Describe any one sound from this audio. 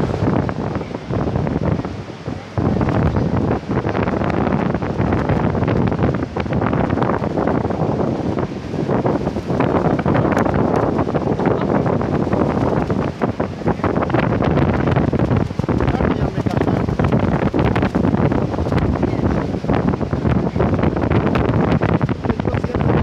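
A waterfall roars loudly onto rocks.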